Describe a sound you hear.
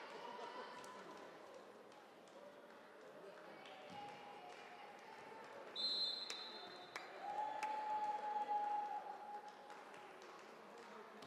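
Handballs thud and bounce on a hard floor in a large echoing hall.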